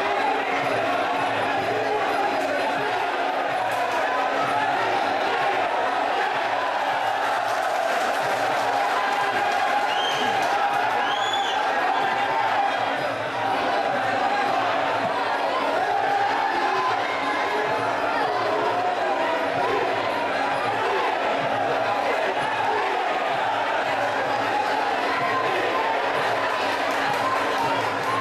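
A large crowd cheers and shouts loudly throughout.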